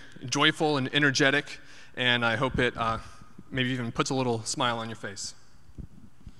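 A young man speaks calmly into a microphone in a large echoing hall.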